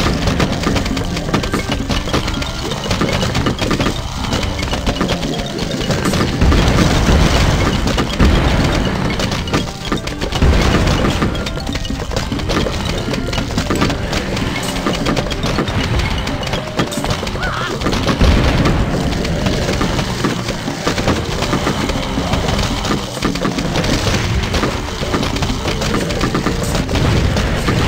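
Upbeat game music plays steadily.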